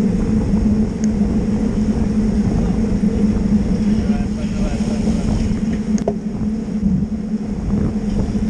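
Wind rushes loudly past, as if on a moving bicycle.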